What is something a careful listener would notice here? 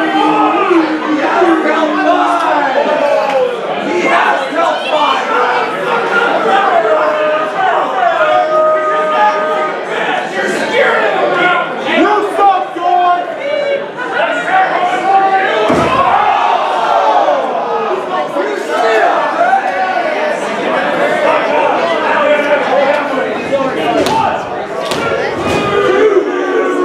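A crowd of men and women chatters and shouts in an echoing hall.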